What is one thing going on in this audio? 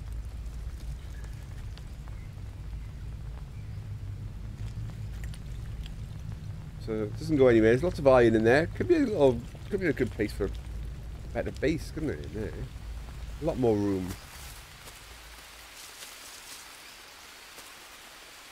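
Footsteps tread on soft forest ground.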